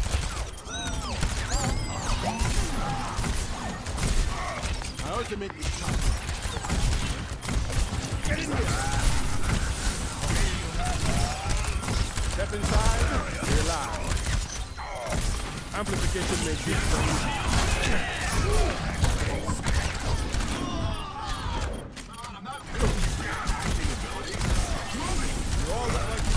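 A rapid gun fires in bursts.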